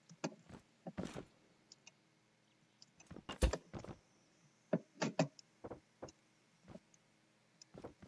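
Wooden blocks click softly as they are placed.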